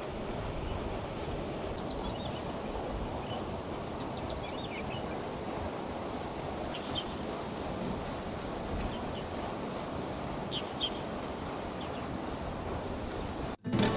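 Wind blows and rumbles steadily across the microphone outdoors.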